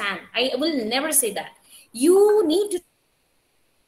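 A young woman speaks with animation through an online call.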